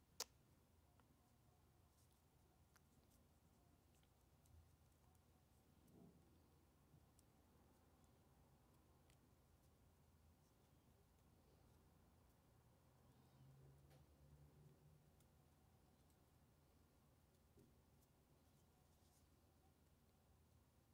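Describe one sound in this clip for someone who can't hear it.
Paper rustles softly as hands turn a decorated egg.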